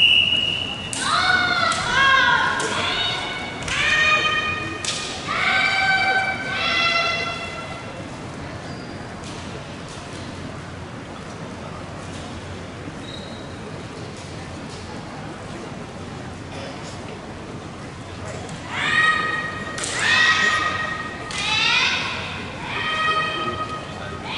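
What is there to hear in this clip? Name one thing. Young women shout sharp, drawn-out cries together in a large echoing hall.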